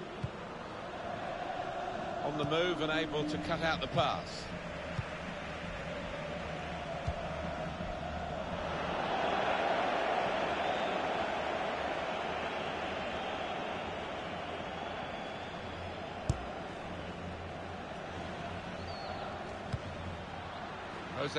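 A stadium crowd roars steadily, swelling for a while and then easing off.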